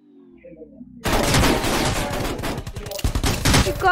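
Rapid gunshots crack loudly.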